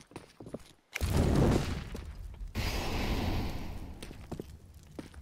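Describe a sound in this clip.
A fire roars and crackles loudly.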